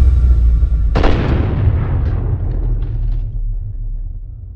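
A second blast booms and slowly fades.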